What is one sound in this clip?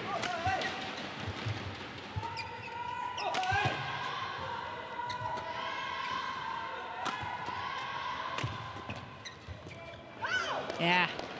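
Shoes squeak on a court floor.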